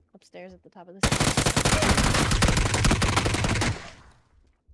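An automatic rifle fires a rapid burst.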